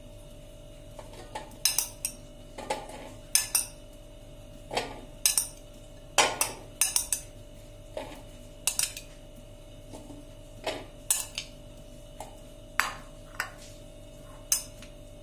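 A metal spoon clinks against a ceramic dish.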